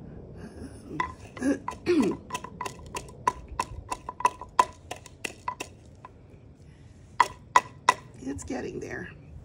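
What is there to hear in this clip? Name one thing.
A wooden pestle pounds seeds in a wooden mortar with quick knocks.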